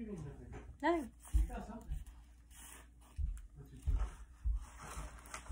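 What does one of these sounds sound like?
Plastic packaging rustles and crinkles as a doll is unwrapped.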